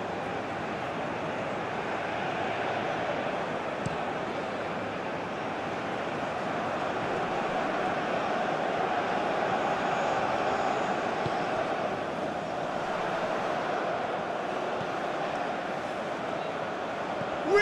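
A large stadium crowd roars and chants steadily, swelling and fading.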